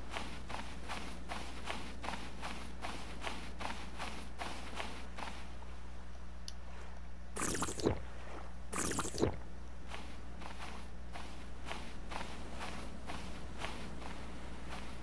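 Gentle waves lap at a shore.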